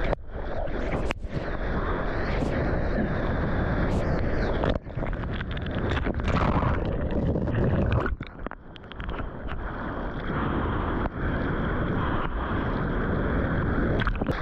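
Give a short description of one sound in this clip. Water splashes and sloshes against a close microphone.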